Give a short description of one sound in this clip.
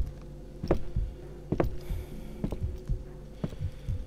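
A man sips a drink through a straw.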